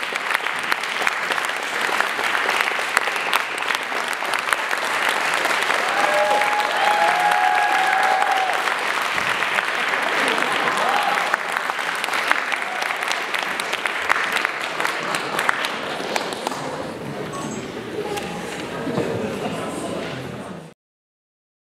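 An audience applauds loudly in a large echoing hall.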